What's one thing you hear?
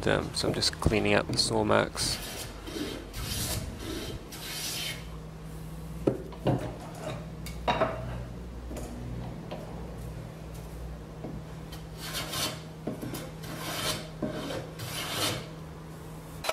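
A hand plane shaves wood in long, rasping strokes.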